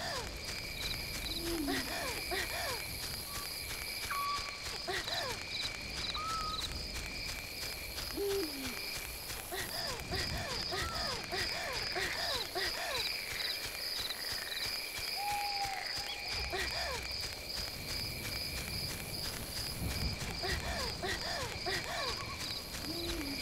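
Footsteps rustle through grass at a steady walking pace.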